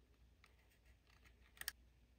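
A circuit board clicks as fingers handle it.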